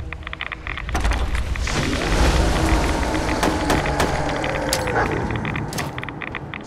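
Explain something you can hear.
A large creature roars and growls nearby.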